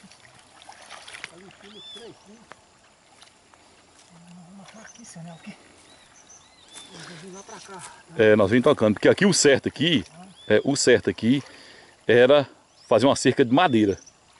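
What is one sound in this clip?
Water splashes as a man wades.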